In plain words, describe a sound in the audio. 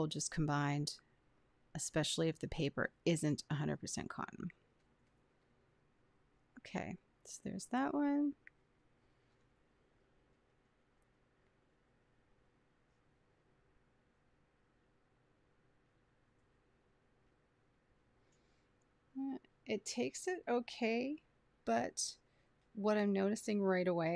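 A woman talks calmly close to a microphone.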